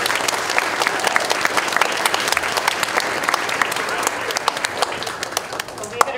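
An audience of children claps in a large echoing hall.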